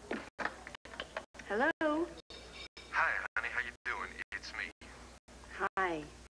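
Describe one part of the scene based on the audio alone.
A young woman talks on a telephone.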